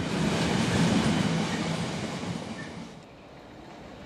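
Loaded freight wagons rumble and clatter past on the rails.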